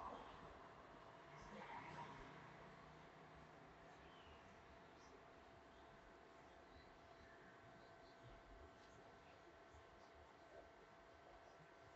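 Fingers rustle and scratch softly through hair, close by.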